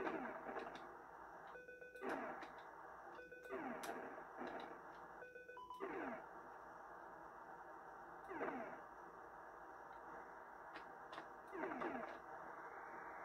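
Video game explosions sound with falling tones several times.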